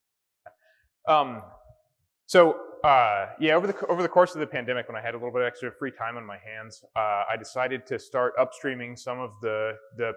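A man speaks calmly to an audience through a microphone.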